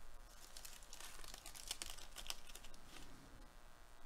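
A foil card pack crinkles and rustles as it is torn open.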